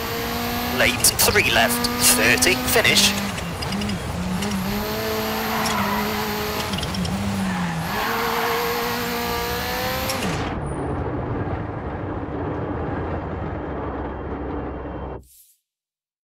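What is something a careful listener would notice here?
A rally car engine roars loudly, revving up and down as it shifts gears.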